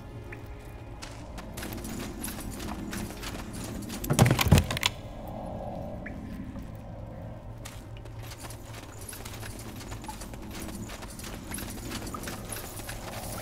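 Footsteps crunch steadily over rough stony ground.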